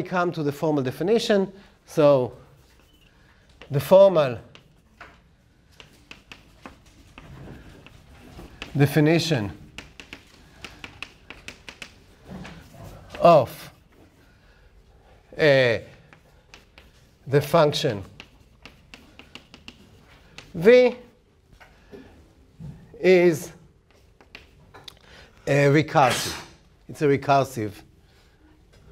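A middle-aged man speaks calmly in short phrases.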